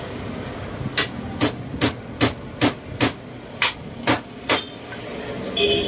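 A hammer taps on wooden cane in quick, even strikes.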